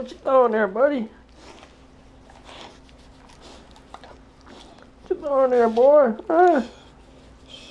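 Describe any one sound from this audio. A dog whines and yowls close by in short, rising and falling bursts.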